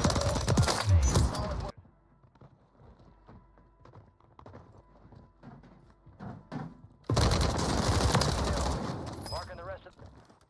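A light machine gun fires rapid bursts in a video game.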